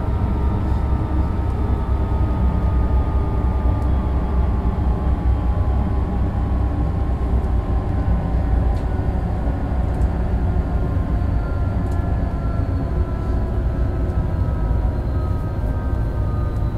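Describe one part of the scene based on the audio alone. A train's electric motors whine, slowly falling in pitch as it slows down.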